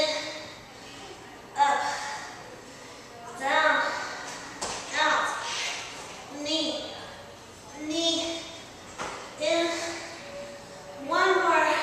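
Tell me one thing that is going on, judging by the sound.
Feet thump on a mat as a young woman jumps.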